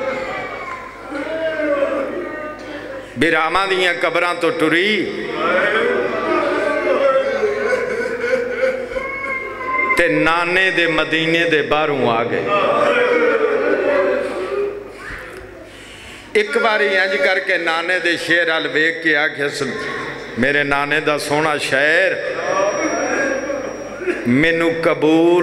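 A man speaks passionately and rhythmically into a microphone through a loudspeaker, his voice ringing in a large space.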